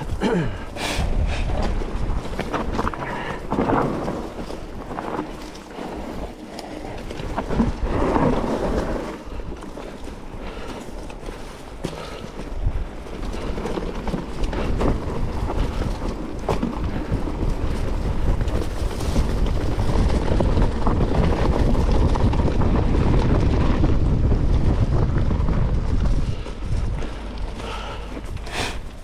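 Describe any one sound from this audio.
Wind rumbles across a microphone outdoors.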